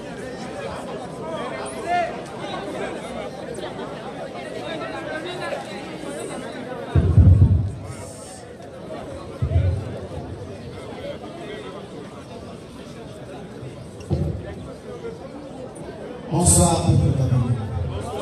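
A man speaks with animation through a loudspeaker, echoing outdoors.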